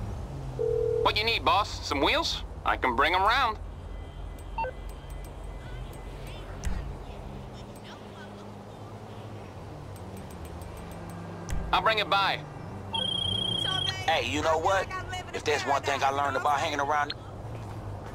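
A man talks over a phone.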